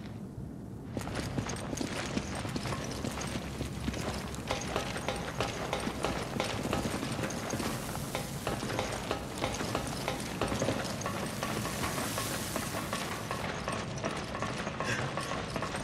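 Footsteps run across metal floors.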